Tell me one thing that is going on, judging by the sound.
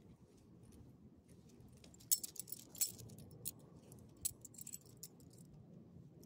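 A hand rubs a dog's fur.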